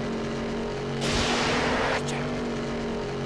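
Tyres skid on dirt with a rough hiss.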